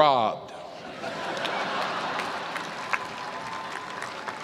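A large crowd murmurs and laughs softly.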